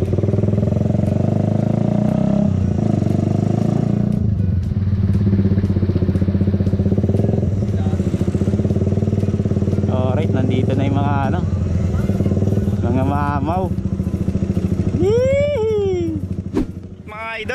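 A motorcycle engine rumbles steadily up close as the bike rides slowly along.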